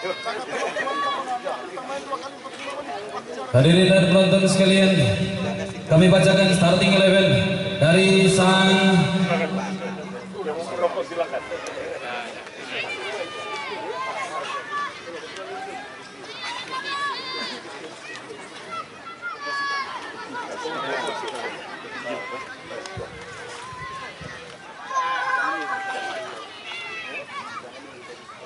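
A crowd of spectators chatters and calls out in the open air.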